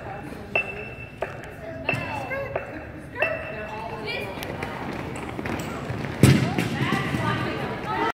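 Young women cheer and shout in a large echoing hall.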